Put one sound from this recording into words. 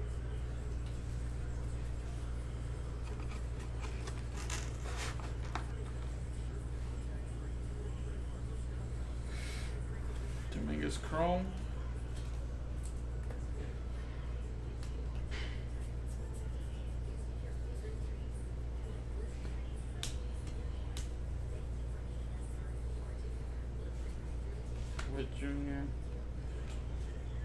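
Trading cards slide and click as they are flipped through by hand.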